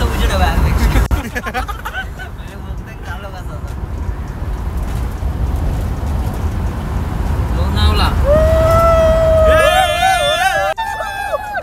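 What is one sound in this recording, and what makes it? Tyres roll steadily on a wet road.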